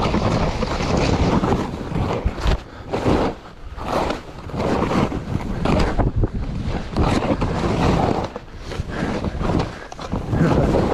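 A snowboard scrapes and hisses through snow.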